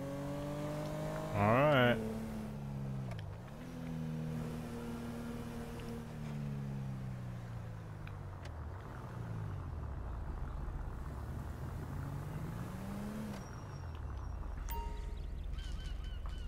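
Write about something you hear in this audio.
A car engine hums and revs up and down as the car drives along.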